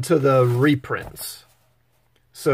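A page of a magazine rustles as it turns.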